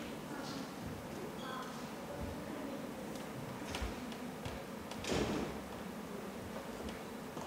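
A young woman speaks with animation through a microphone in a large hall.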